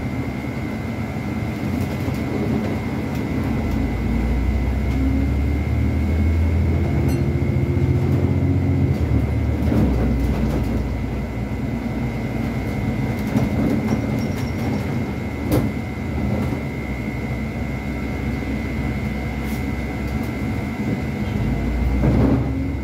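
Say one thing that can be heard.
Loose fittings inside a bus rattle and click now and then.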